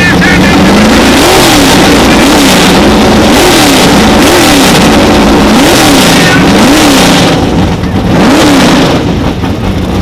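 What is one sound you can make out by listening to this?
A race car engine revs up and down in sharp bursts.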